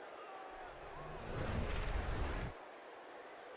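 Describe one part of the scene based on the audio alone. A loud rushing whoosh sweeps past.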